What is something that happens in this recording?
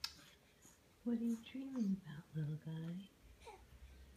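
A newborn baby coos and babbles softly close by.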